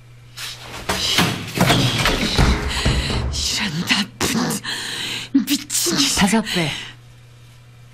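A woman shouts angrily, close by.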